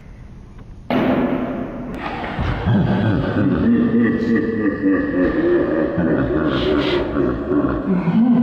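A young man groans as he wakes up.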